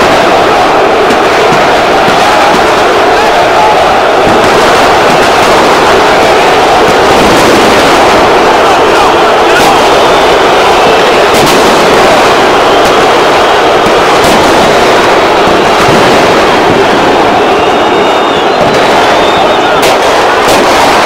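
A large stadium crowd roars and chants loudly throughout.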